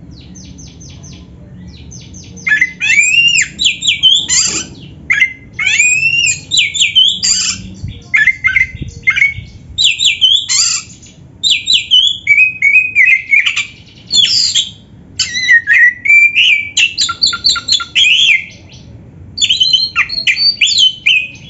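A caged songbird sings loud, varied whistling phrases close by.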